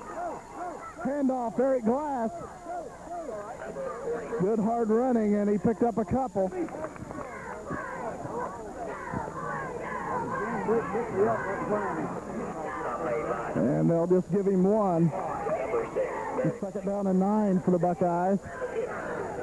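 Men shout nearby.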